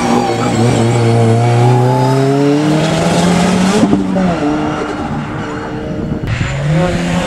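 A rally car engine revs hard and shifts gears as it speeds away.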